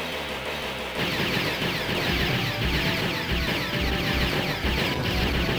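Rapid arcade gunfire blasts away.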